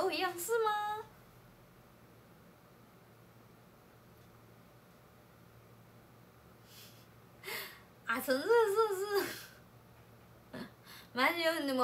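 A young woman speaks close by in a high, animated voice.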